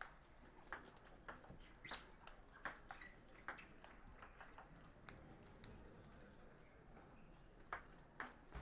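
A ping-pong ball clicks back and forth between paddles and a table in a quick rally.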